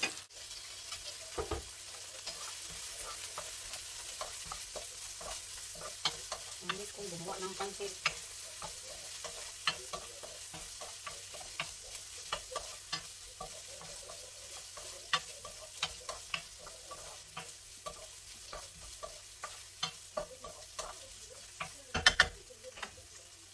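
A wooden spatula scrapes and taps against a frying pan.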